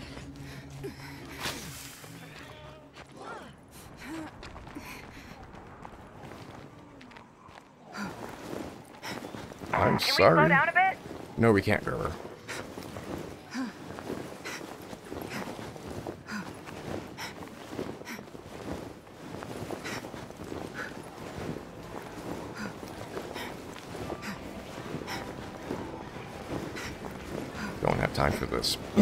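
Footsteps crunch on gravel and pavement.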